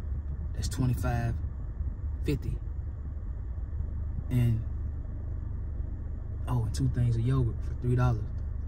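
A low car engine hums steadily inside a car.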